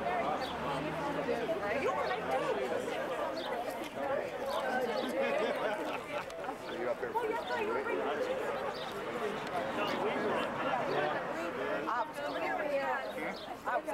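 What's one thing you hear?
A crowd of men and women chat and laugh nearby, outdoors.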